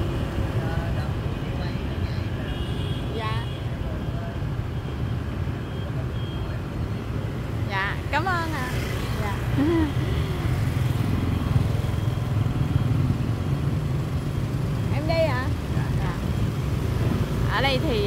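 Motor scooters and cars drive along a city street.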